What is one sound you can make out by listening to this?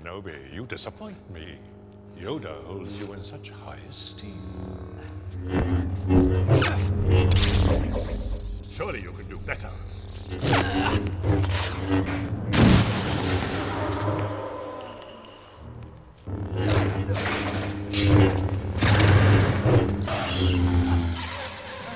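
Energy blades hum and buzz as they swing.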